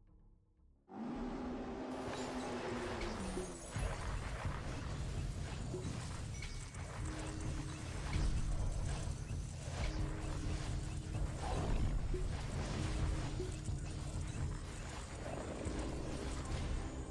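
Blasts and crackling magic rumble through a busy battle.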